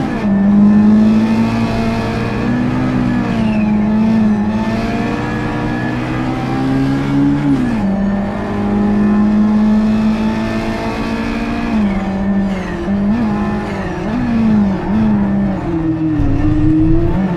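Other race car engines whine close by.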